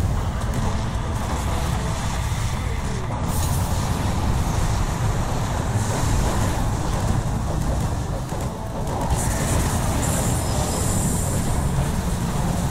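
Spell effects crackle and blast during a game battle.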